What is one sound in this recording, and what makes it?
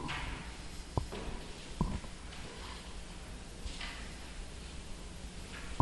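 An eraser wipes across a chalkboard.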